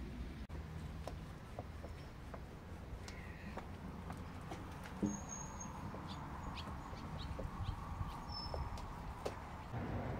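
A cloth rubs and squeaks against window glass.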